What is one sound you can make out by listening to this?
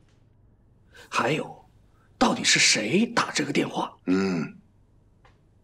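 A young man asks questions in a tense voice close by.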